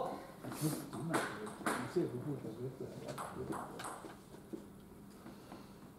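A table tennis ball bounces on a table before a serve.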